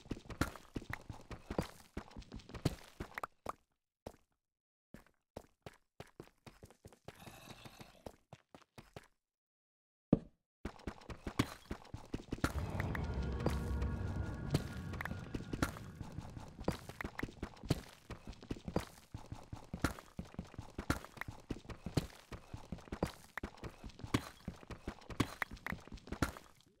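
A pickaxe chips at stone with quick, repeated knocks.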